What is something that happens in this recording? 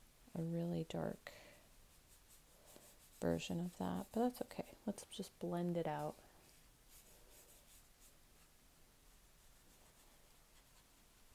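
A brush softly strokes wet paint across paper.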